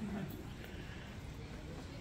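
Footsteps walk softly across a carpeted floor.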